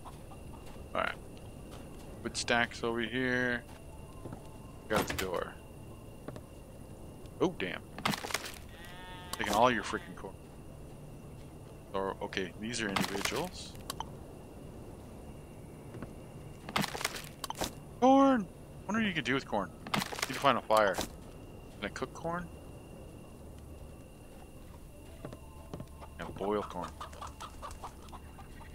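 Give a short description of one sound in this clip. A man talks calmly into a close microphone, in bursts.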